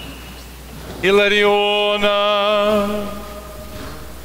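A man sings a long, sustained chanted note in a large echoing hall.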